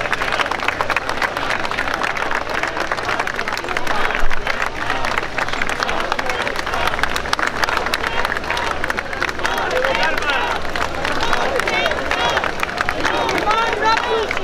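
A large crowd talks and cheers loudly outdoors.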